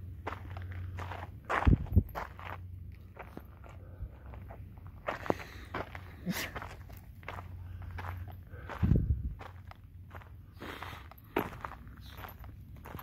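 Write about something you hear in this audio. A dog's paws patter on a dirt path.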